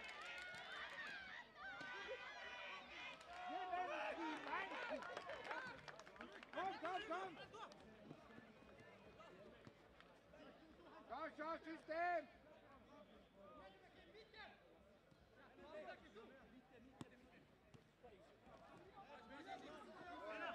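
Men shout to each other across a football pitch.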